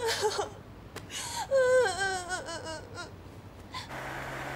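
A woman speaks with emotion close by.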